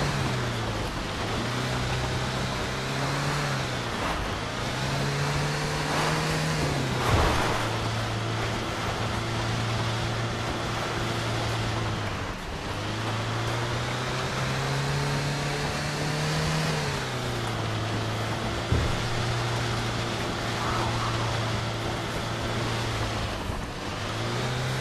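A truck engine hums steadily, rising and falling as it shifts gears.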